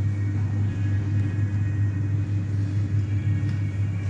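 A lift button clicks when pressed.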